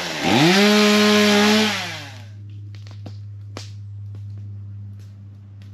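A chainsaw idles with a low steady hum.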